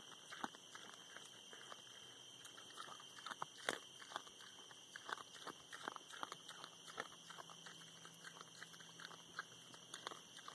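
A pig crunches corn kernels close by.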